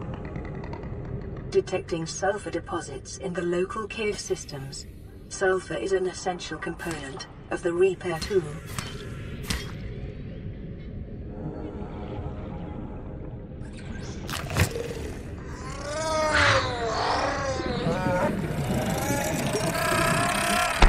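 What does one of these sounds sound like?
Water swirls in a low murmur underwater.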